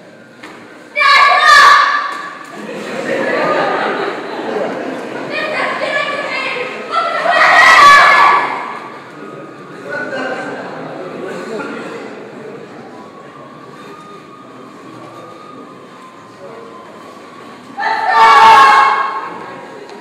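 A man speaks loudly and with feeling in a large echoing hall.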